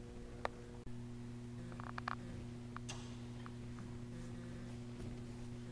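Metal cable handles clink as they are pulled.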